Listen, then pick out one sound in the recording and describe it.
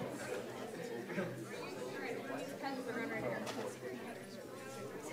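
A crowd of men and women chatter in a room.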